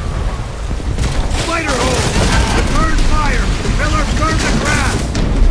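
A flamethrower roars loudly as it shoots flames.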